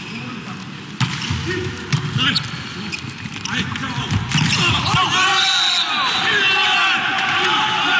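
A volleyball is struck hard several times.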